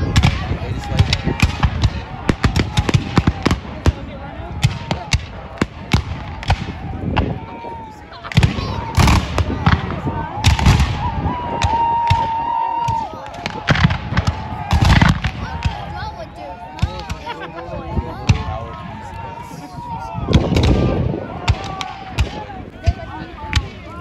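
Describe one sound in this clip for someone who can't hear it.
A crowd of onlookers murmurs and chatters close by.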